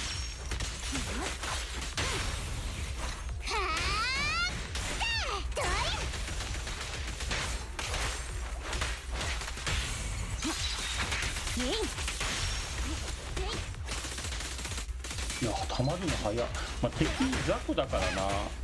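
Swords clash and electric blasts crackle in a fast fight.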